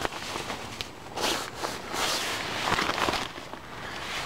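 Nylon tent fabric rustles close by.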